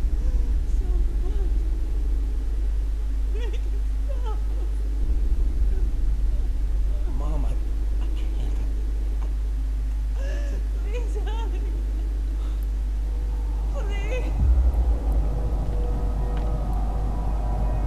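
A woman speaks tearfully, her voice trembling.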